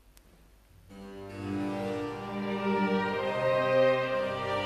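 A small string ensemble begins to play.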